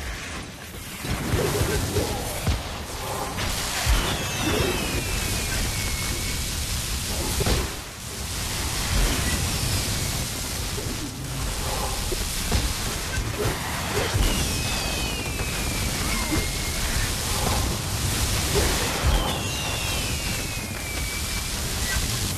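Magic blasts and hits crash again and again in a busy fight.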